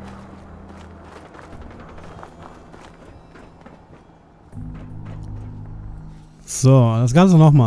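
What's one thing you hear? Footsteps crunch softly over rubble.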